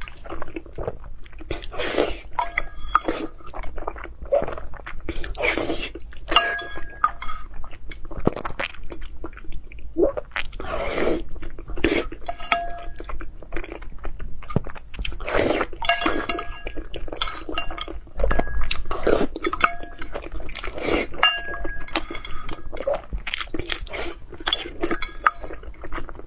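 A spoon clinks against a stone bowl.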